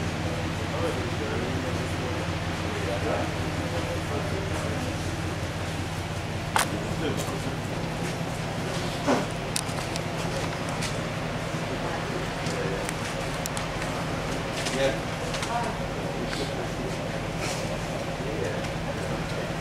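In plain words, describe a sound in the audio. Men and women murmur softly among themselves outdoors.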